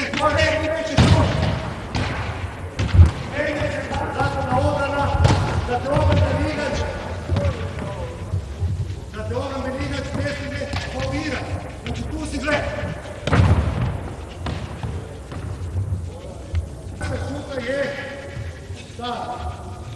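A ball thuds on a hard floor.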